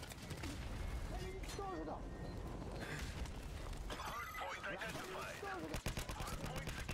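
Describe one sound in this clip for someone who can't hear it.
Rifle shots fire in quick bursts.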